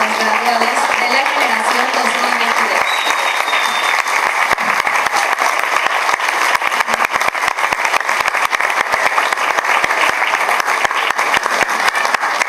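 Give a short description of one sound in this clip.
A crowd applauds steadily in a large echoing hall.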